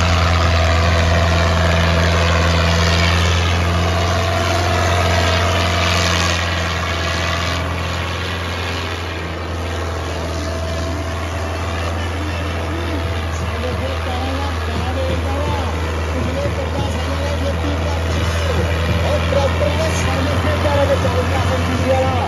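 A tractor engine roars loudly under strain.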